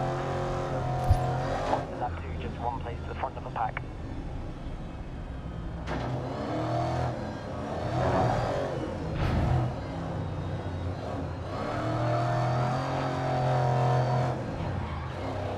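A racing car engine roars and revs up and down, heard from inside the car.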